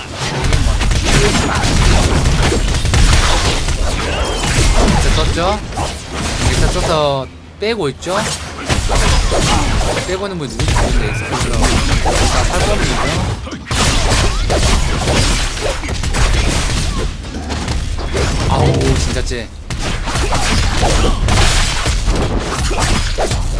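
Fighting game sound effects clash and burst loudly.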